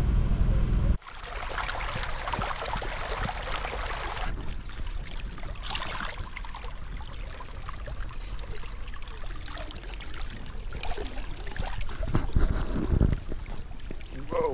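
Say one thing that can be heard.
Water streams and gurgles in a shallow creek.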